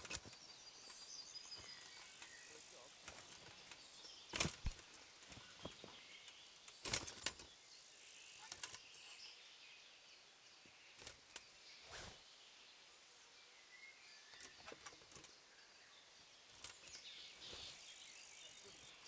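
Metal armour clinks and rattles with movement.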